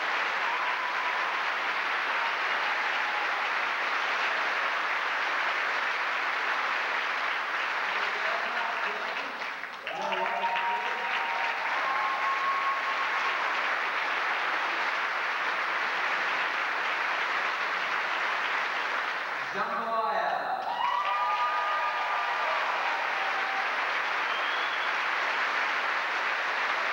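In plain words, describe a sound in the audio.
A large audience applauds loudly throughout in an echoing hall.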